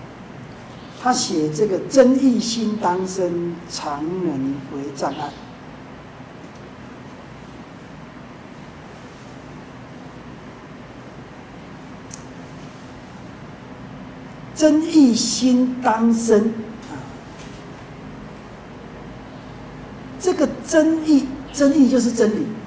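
An older man reads aloud from a book in bursts, close by.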